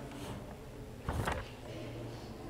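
A page of a book rustles as it turns.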